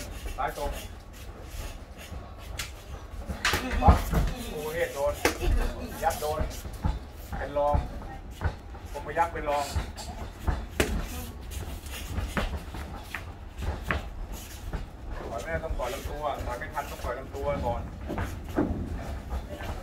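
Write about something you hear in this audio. Boxing gloves thud against each other in quick sparring blows.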